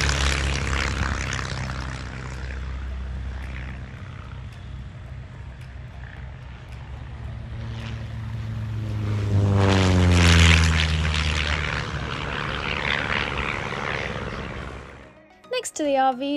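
A light aircraft engine drones nearby.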